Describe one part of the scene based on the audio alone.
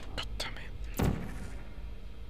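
A futuristic gun fires with a short, sharp zap.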